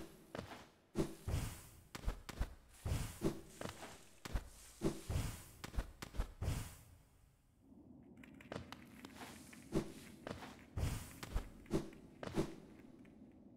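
Light footsteps patter quickly on stone.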